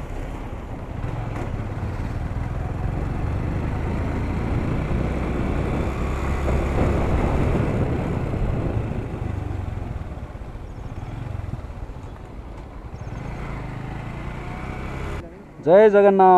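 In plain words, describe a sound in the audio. A motorcycle engine hums low.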